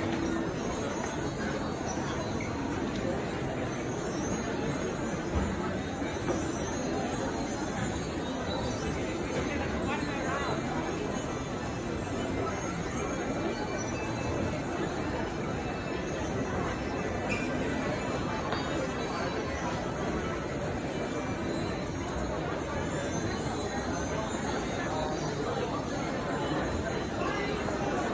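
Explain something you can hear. A crowd of shoppers murmurs and chatters steadily in a large echoing hall.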